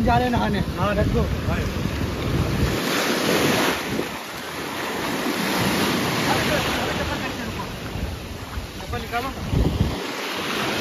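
Waves crash and wash onto the shore.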